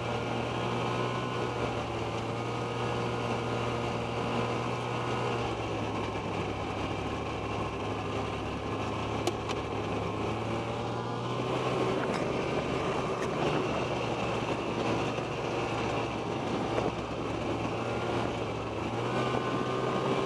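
Wind rushes past outdoors.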